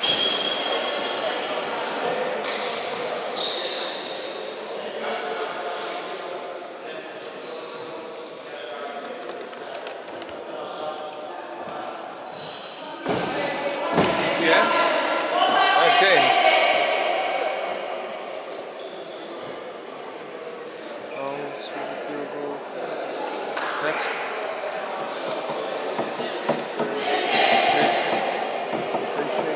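A crowd of people chatter and call out in a large echoing hall.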